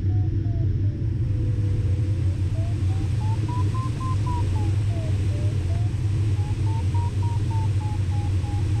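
A flight instrument beeps rapidly, its tone slowly rising and falling in pitch.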